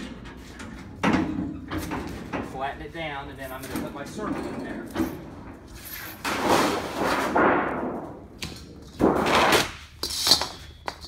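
Thin sheet metal wobbles and rumbles as it is flexed by hand.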